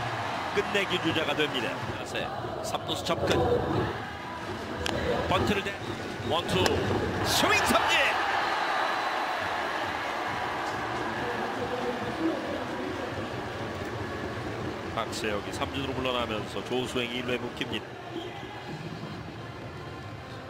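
A large stadium crowd cheers and chants.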